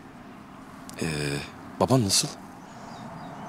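A man speaks softly and closely.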